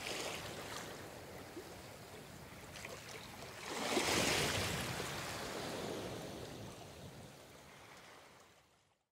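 Waves wash up onto a sandy shore and surge loudly, then slowly fade.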